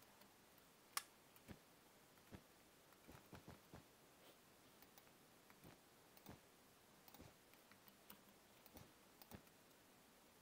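Soft clicks and taps sound as blocks are chiselled and placed.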